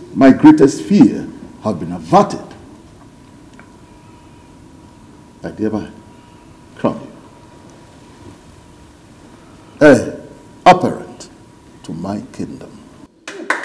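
An elderly man speaks slowly and firmly, close by.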